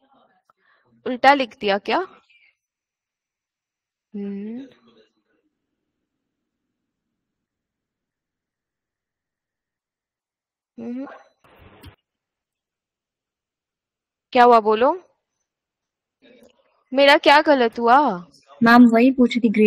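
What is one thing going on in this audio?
A young woman speaks calmly in short phrases over an online call.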